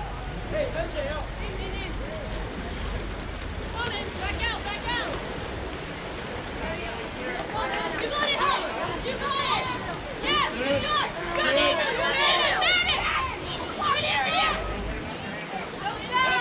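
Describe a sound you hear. Water polo players splash and thrash in an outdoor pool.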